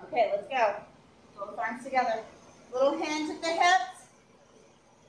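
An adult woman gives exercise instructions.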